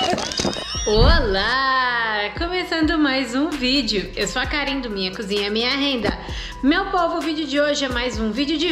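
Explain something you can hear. A young woman talks cheerfully and close up.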